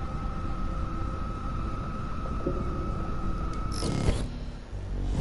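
A small metal part clicks into place.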